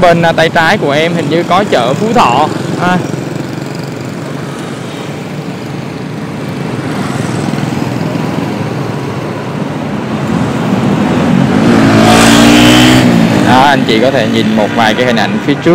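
Motorbike engines hum and drone in busy street traffic.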